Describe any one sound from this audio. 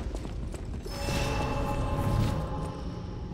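A magical chime rings out.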